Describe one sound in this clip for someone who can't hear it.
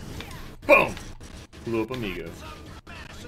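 A young man exclaims loudly into a microphone.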